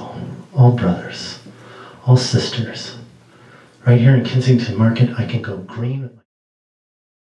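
A middle-aged man speaks with feeling close to a microphone.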